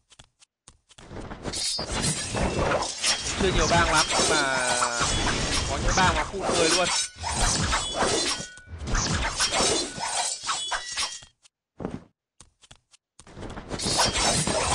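Fighting game sounds of clashing blows and spell bursts play.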